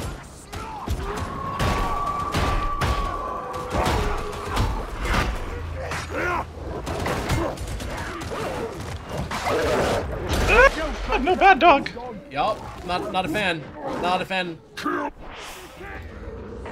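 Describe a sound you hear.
A man talks with animation through a headset microphone.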